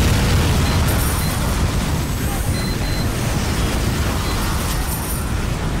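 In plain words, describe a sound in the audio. Fiery explosions boom in a video game battle.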